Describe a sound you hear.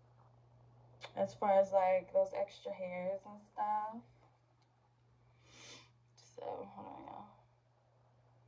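A young woman speaks calmly and close by.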